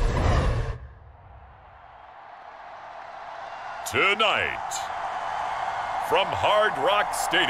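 A large crowd cheers in a stadium.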